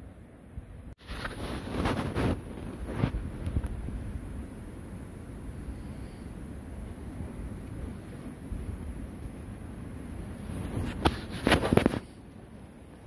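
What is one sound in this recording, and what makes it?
Nylon fabric rustles and crinkles close by.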